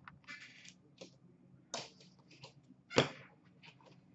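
Plastic card holders click and tap in a tray.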